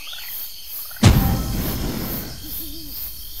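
A magical whoosh sweeps through with a sparkling shimmer.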